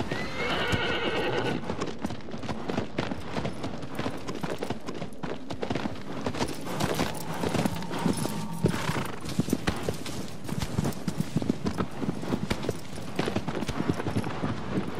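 A horse's hooves clop on the ground, speeding up to a gallop.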